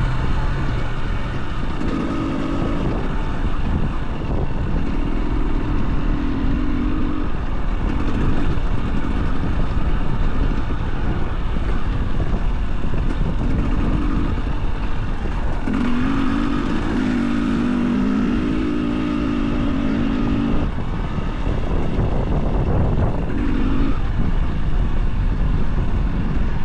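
A dirt bike engine rumbles and revs up and down as it rides along.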